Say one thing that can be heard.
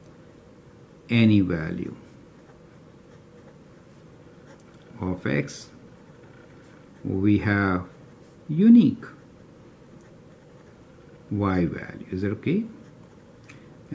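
A marker squeaks softly across paper.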